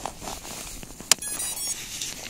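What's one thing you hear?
A plastic plug clicks into place.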